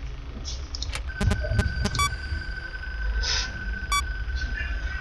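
Short electronic clicks sound.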